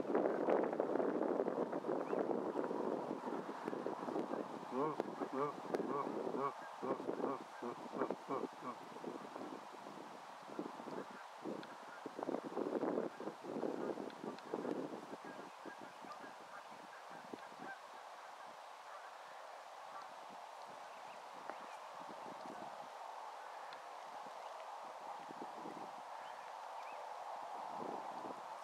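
A bird's feet rustle softly through dry grass.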